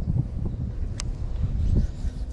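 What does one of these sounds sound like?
A fishing lure splashes lightly into shallow water close by.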